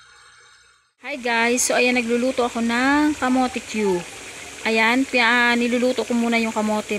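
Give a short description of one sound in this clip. Hot oil sizzles and bubbles steadily in a pan.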